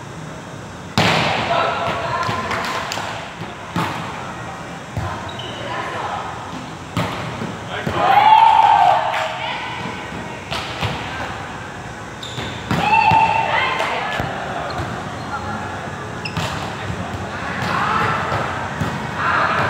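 A ball is struck with sharp slaps in a large echoing hall.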